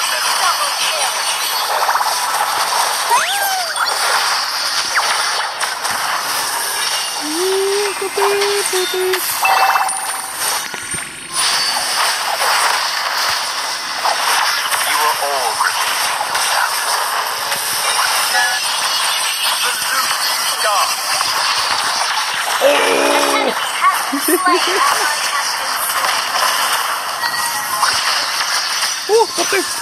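Game spell effects whoosh, zap and crash in rapid bursts.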